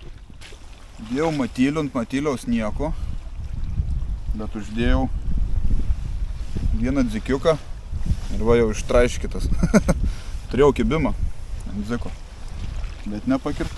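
A young man talks calmly and closely to a microphone.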